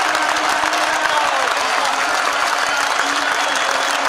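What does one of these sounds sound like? Spectators nearby clap their hands.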